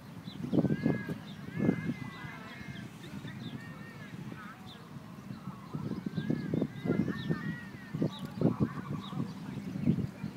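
Ducklings peep repeatedly close by.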